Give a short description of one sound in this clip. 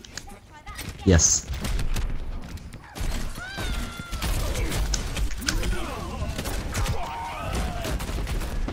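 A grenade launcher fires with hollow thumps.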